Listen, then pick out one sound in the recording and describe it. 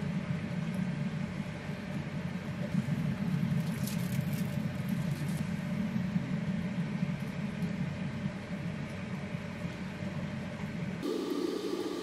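Sauce bubbles and simmers steadily in a pan.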